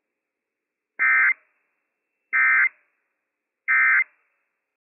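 An emergency alert broadcast sends three short, harsh electronic data bursts.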